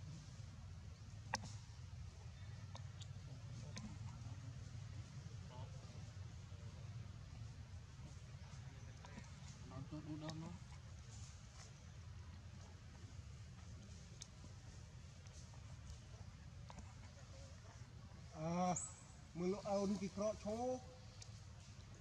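Leaves and branches rustle as a monkey climbs through a tree.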